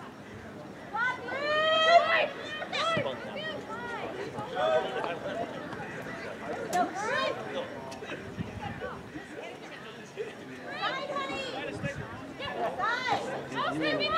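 Young women shout to each other from a distance outdoors.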